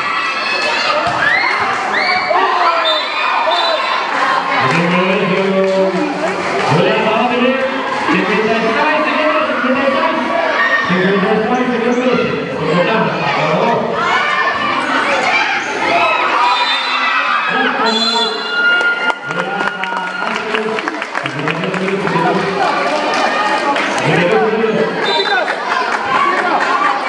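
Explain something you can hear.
A large crowd shouts and cheers in a big echoing hall.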